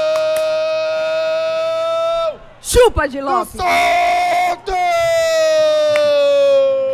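A man shouts a long, drawn-out cry of celebration into a microphone.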